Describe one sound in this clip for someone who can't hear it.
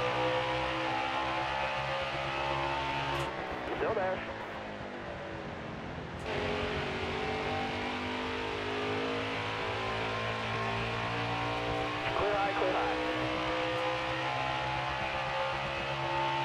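A race car engine roars loudly at high speed.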